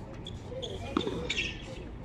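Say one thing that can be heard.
A player slaps a hard rubber ball with a bare hand.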